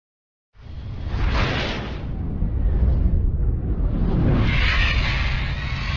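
A burst of flame roars and whooshes past.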